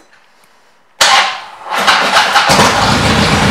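A motorcycle engine starts up.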